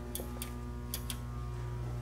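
Buttons on a control panel click.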